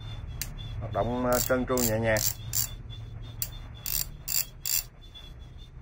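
Metal tools clink and clatter as they are handled.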